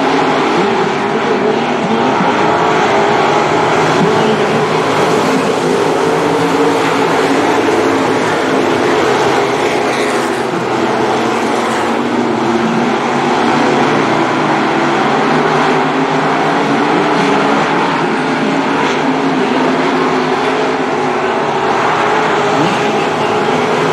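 Several race car engines roar loudly as the cars speed around a dirt track.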